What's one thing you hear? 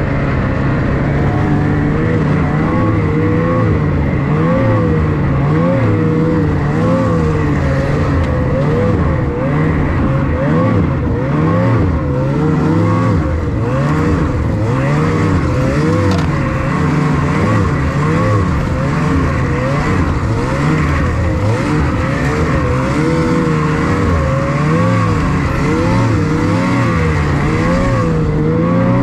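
A snowmobile engine roars close by, its pitch rising and falling as it speeds up and slows down.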